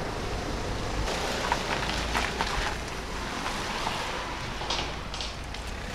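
Tyres hiss and splash over wet tarmac as a van drives past.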